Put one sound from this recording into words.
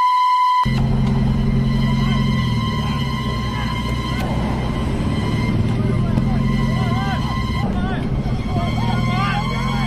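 Several men shout and argue outdoors at a distance.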